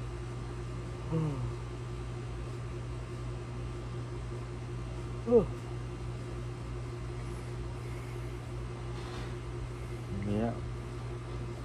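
A young man close by lets out short, drawn-out vocal sounds now and then.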